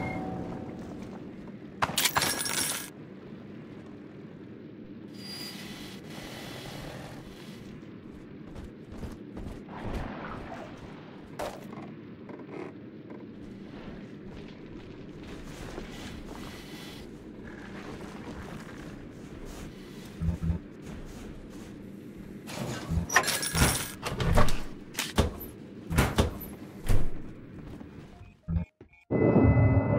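Footsteps clank across a hard floor.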